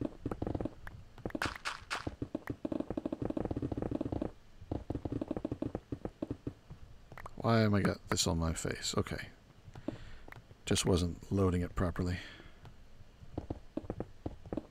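Stone blocks crunch in quick, rapid bursts as they are broken.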